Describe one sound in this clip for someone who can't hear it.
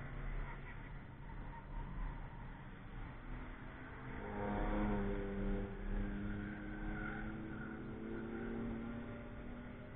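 A car engine revs as the car approaches and speeds past.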